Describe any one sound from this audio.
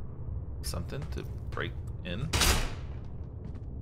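A metal gate rattles.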